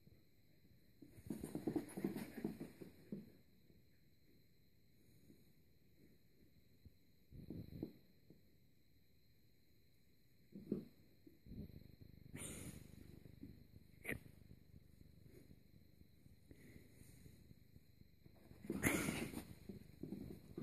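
A dog and a cat scuffle and paw at each other on a carpet in short bursts.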